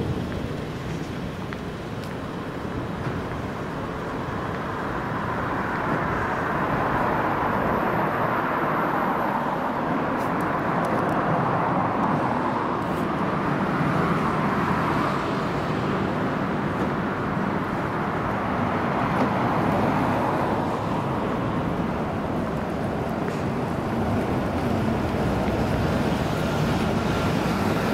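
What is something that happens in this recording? Traffic rumbles steadily along a city street outdoors.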